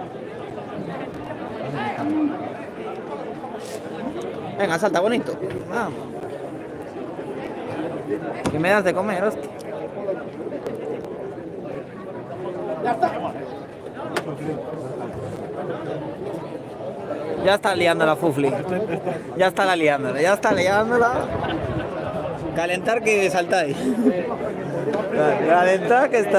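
A crowd of men chatters and shouts outdoors in an open arena.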